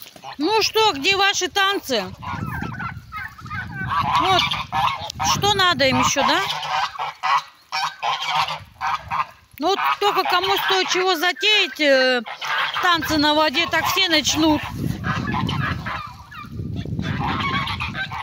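Ducks and geese splash and dabble in a muddy puddle.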